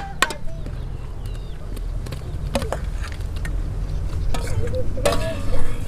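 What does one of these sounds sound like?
Pieces of raw meat drop wetly into a pot of liquid.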